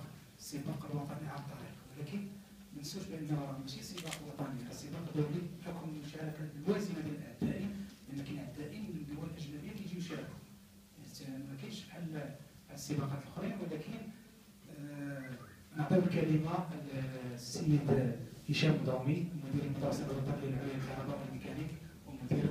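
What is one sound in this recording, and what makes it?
A middle-aged man speaks steadily into a microphone in an echoing hall.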